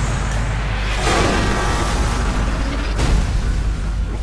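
A truck explodes with a heavy roaring blast.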